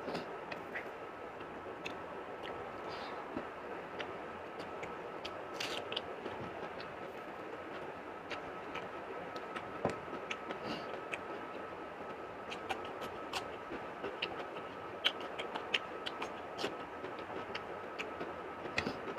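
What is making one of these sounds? A man chews food with wet, smacking sounds close by.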